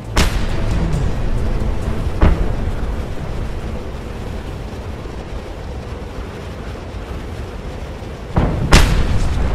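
Wind rushes loudly past a falling skydiver.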